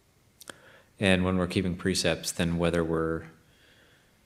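A man speaks calmly and softly, close by.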